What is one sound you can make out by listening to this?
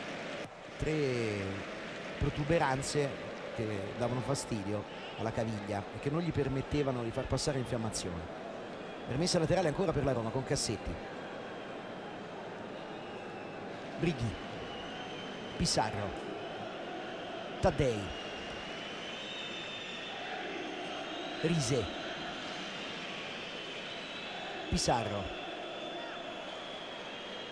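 A large crowd murmurs and chants throughout a stadium.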